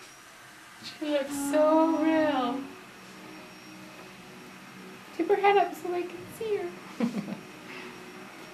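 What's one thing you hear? A woman speaks softly and soothingly close by.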